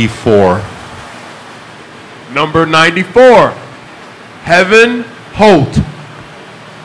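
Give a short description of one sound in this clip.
A middle-aged man speaks calmly into a microphone in a room with some echo.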